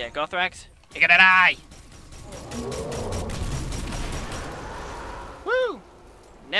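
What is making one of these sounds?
A gun fires a burst of glowing shots.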